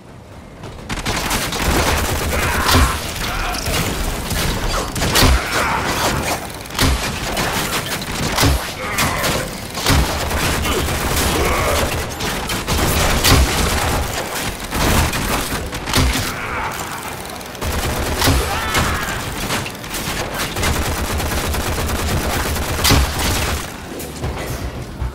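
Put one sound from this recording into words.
Gunfire bursts rapidly again and again.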